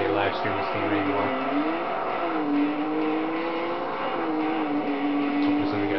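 A racing car engine revs high and shifts gears, rising and falling in pitch.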